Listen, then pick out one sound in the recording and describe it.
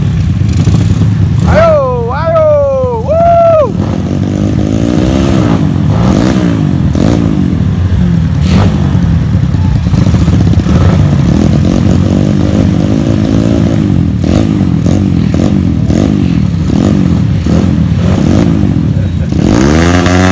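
Many motorcycle engines idle and rev loudly nearby.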